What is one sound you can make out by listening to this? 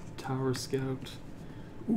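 Playing cards slide and rustle on a mat.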